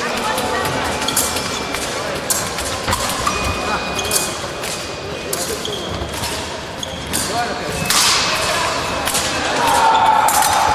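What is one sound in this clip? Fencers' shoes squeak and tap on a wooden floor in a large echoing hall.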